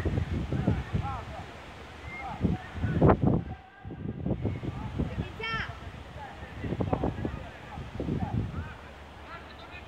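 Children shout and call out to each other across an open outdoor field.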